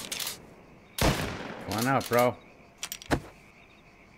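A pistol fires a shot.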